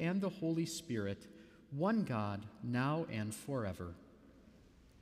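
A man chants through a microphone.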